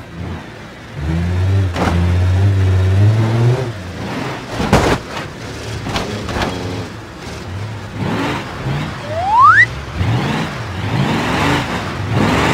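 A car engine revs loudly and then settles.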